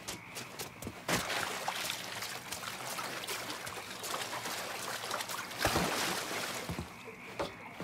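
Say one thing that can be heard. Water splashes as a man wades through it.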